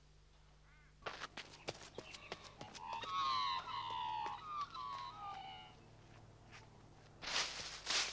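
Footsteps run quickly over the ground.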